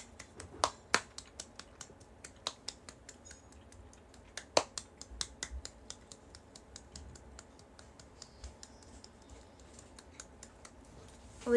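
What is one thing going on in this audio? A young woman claps her hands softly and quickly close by.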